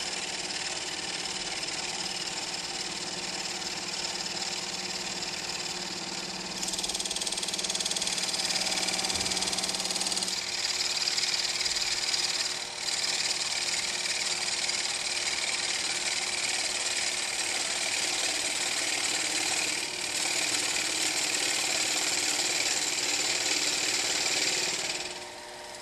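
A cutting tool scrapes and hisses against spinning wood.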